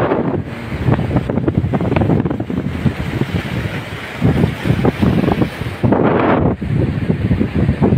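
Waves wash against a rocky shore.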